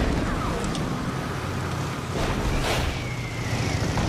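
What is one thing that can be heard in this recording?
A motorcycle engine roars past.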